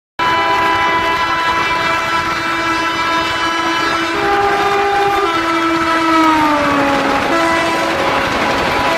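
A train horn blares loudly and drops in pitch as the oncoming train passes.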